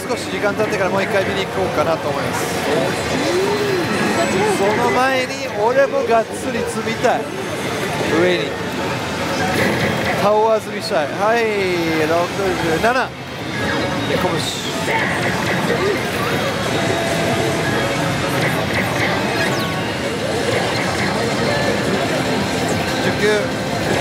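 A slot machine plays loud electronic music and jingles.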